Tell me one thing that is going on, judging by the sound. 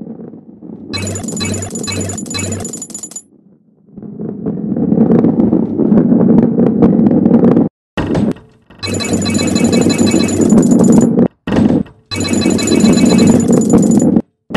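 Coins chime with bright jingles as they are collected.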